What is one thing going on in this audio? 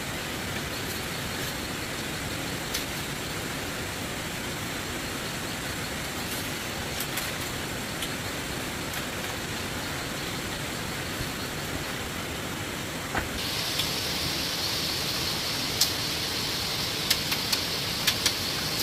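Bamboo sticks knock and tap lightly together.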